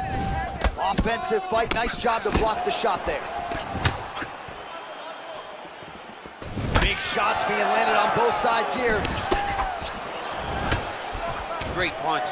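Punches land with heavy thuds on bare skin.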